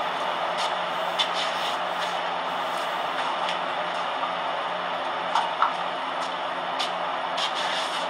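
A young man talks quietly on a phone nearby.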